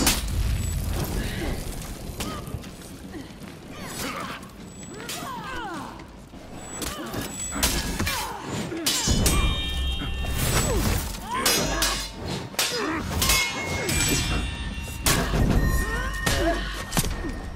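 Armoured warriors grunt and shout as they strike.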